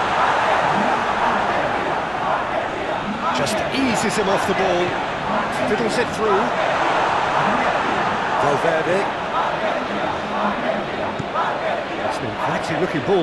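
A large crowd roars and chants steadily in a big stadium.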